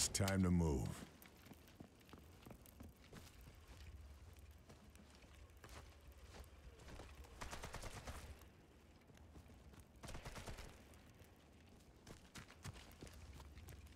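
Footsteps tread on wooden boards and dirt.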